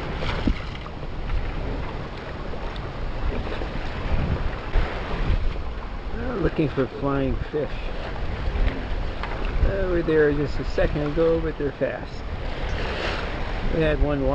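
Waves splash against the hull of a sailing boat.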